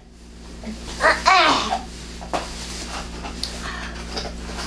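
An elderly woman speaks with animation nearby.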